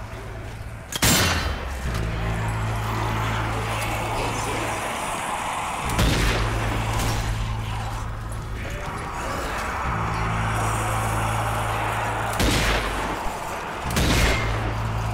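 Loud gunshots ring out one at a time, with echoes.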